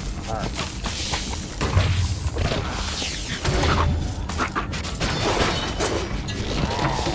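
Monsters grunt and rattle as they are hit.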